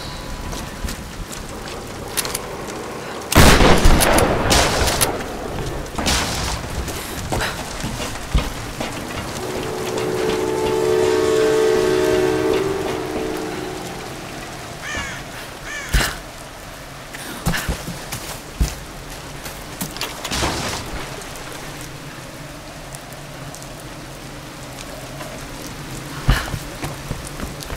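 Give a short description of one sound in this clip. Footsteps crunch over rubble and grass.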